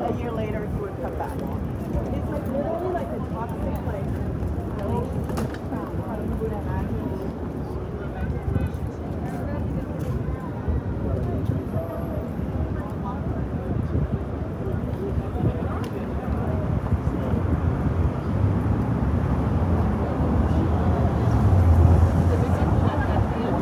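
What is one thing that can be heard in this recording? A crowd of people talks and murmurs all around outdoors.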